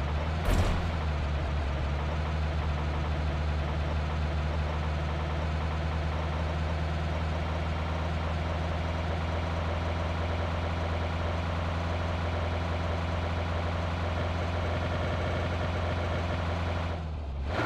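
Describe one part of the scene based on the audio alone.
A car engine hums steadily while driving over grass.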